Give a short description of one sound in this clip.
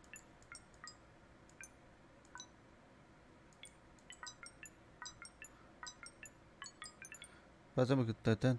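Buttons click on a keypad.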